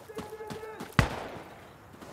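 A rifle fires a single loud shot that echoes off.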